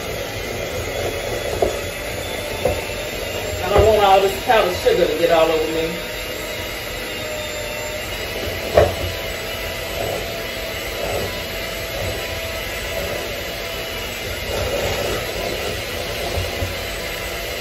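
A hand mixer whirs steadily in a bowl.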